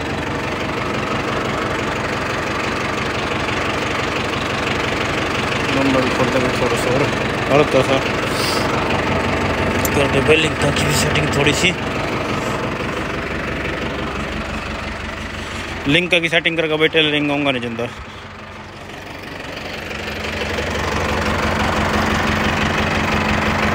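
A tractor engine idles with a steady, rumbling drone.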